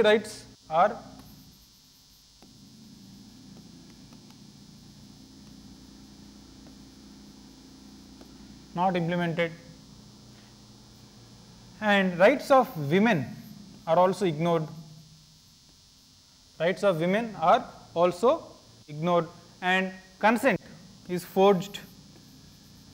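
A man lectures calmly into a microphone, in short bursts.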